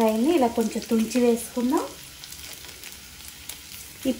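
Dried chillies drop into a frying pan.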